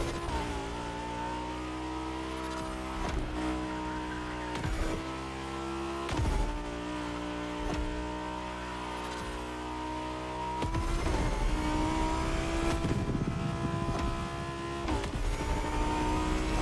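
A sports car engine roars at high revs, dipping briefly with each gear change.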